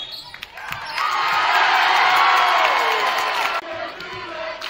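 A crowd cheers and claps loudly.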